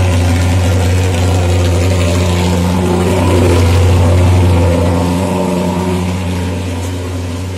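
A fogging machine engine drones loudly and steadily close by.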